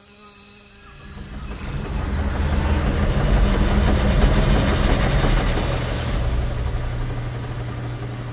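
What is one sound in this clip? A loud whooshing rush swells and then fades.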